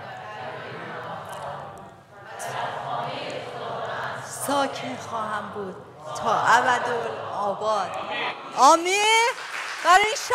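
A woman speaks with animation through a microphone in a large echoing hall.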